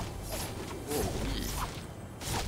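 A chest opens with a bright chime.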